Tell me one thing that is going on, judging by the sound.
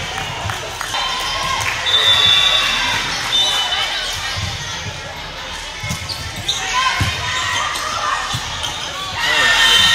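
A crowd chatters and cheers throughout a large echoing gym.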